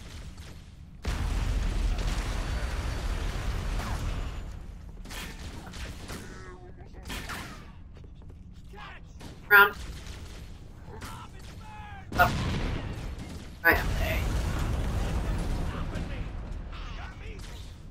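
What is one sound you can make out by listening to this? Laser guns fire in bursts with loud rushing blasts.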